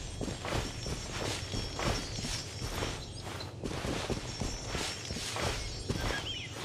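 Quick footsteps rustle through grass.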